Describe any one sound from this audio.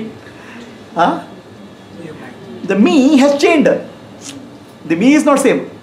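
A middle-aged man speaks with animation close to a clip-on microphone.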